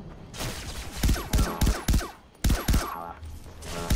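A pistol fires several sharp shots in quick succession.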